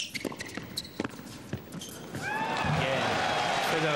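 Players' shoes squeak on the court.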